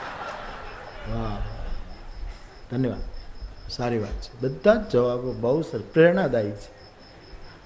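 A man in the crowd laughs loudly.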